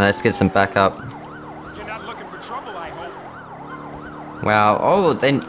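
A police siren wails up and down in quick cycles.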